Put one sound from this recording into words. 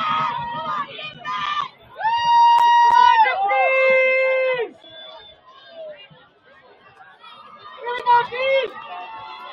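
Young men shout and chant loudly outdoors.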